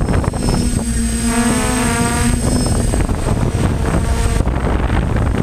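Small drone motors whine, shifting in pitch.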